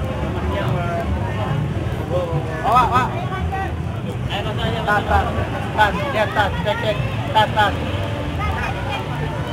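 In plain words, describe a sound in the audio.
A large crowd of men and women chatters outdoors.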